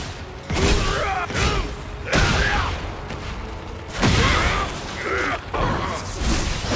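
Heavy punches and kicks land with loud thumping impacts.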